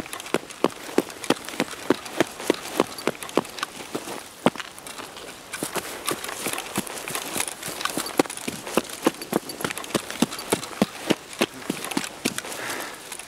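Footsteps run quickly and steadily on hard ground.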